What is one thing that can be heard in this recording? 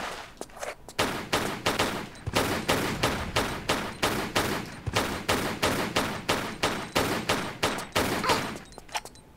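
Pistols fire in rapid shots.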